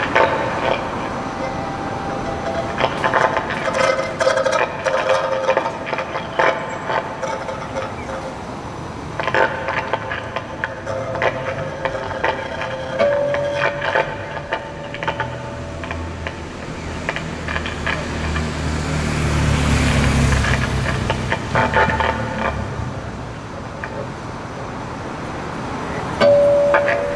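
A cello plays low notes.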